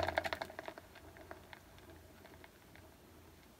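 A spinning turntable whirs and slowly winds down.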